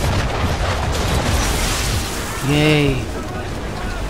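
Cannonballs splash into the sea.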